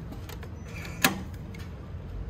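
A card reader beeps as a key card is tapped.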